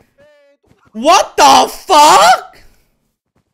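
A young man shouts loudly into a microphone.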